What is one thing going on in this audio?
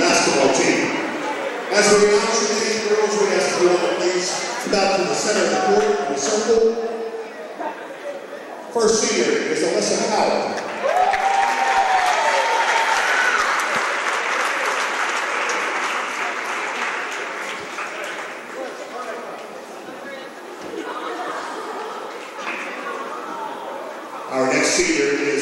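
A man announces names over a loudspeaker in a large echoing gym.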